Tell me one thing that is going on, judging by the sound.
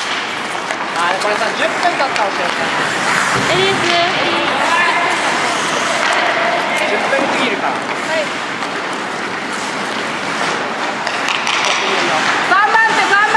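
Men shout to each other in a large echoing rink.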